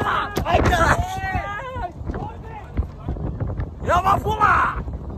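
A young man laughs and talks excitedly close to the microphone.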